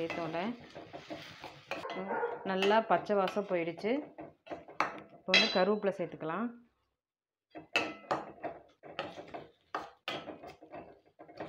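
A metal spoon scrapes and stirs a thick mixture in a steel bowl.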